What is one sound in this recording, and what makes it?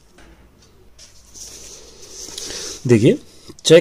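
A page of paper rustles as it is turned.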